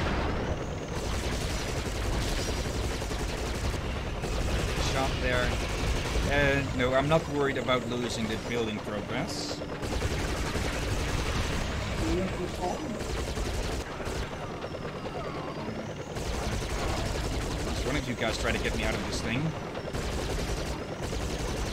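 A helicopter's rotor whirs steadily.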